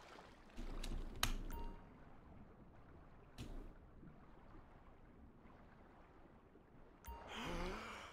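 A swimmer moves underwater with muffled bubbling.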